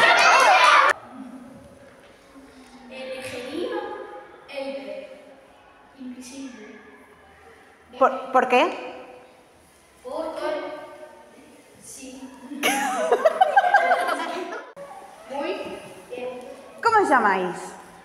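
A young boy talks in an echoing hall.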